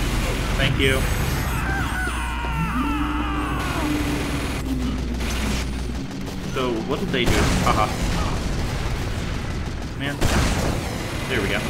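A flamethrower roars in short bursts.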